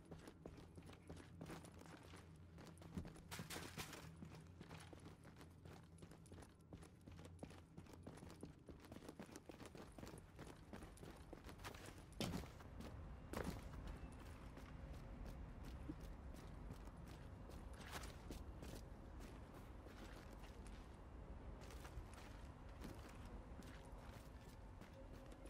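Footsteps thud steadily on the floor.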